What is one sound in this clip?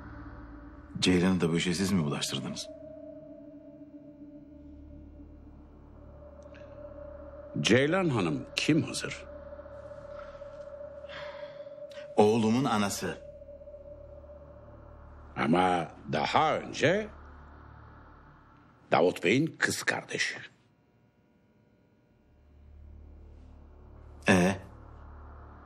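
A middle-aged man speaks calmly and seriously, close by.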